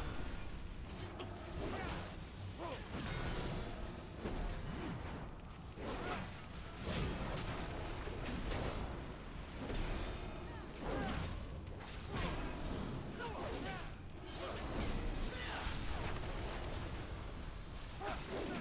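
Weapons clash and strike repeatedly.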